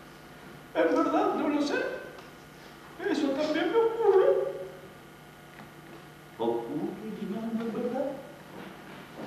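A man speaks dramatically in short lines, heard from a distance.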